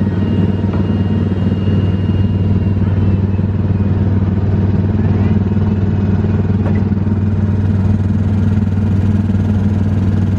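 A small ride car hums and rumbles steadily along a track.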